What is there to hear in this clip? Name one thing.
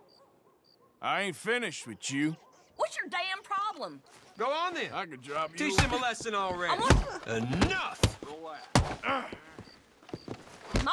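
A woman speaks angrily.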